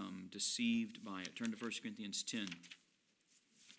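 A middle-aged man speaks calmly into a microphone in a small echoing room.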